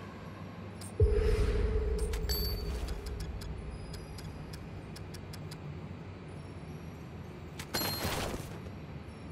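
A game menu makes short whooshing sounds as it opens and closes.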